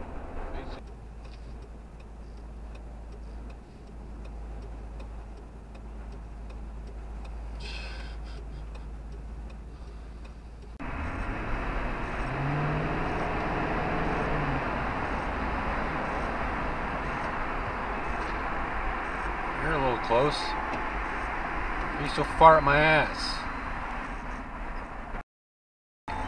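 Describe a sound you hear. A car drives along with a steady hum of road noise from inside.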